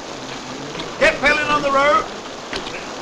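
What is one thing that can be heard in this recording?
A man shouts outdoors.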